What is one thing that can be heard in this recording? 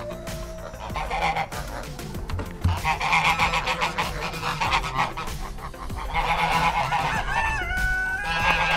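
Geese honk and cackle loudly close by.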